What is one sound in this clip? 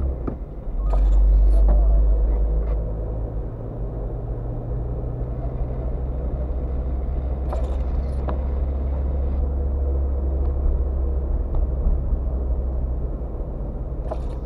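Windscreen wipers swish across wet glass now and then.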